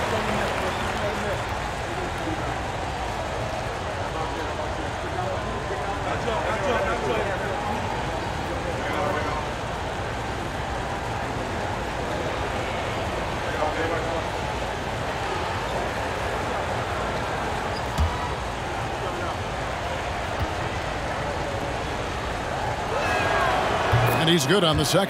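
A large arena crowd murmurs steadily.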